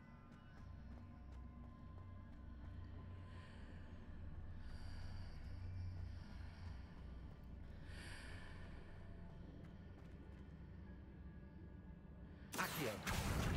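Footsteps patter quickly across a hard stone floor.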